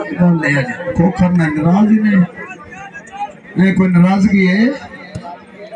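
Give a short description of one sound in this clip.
A man chants loudly and rhythmically nearby.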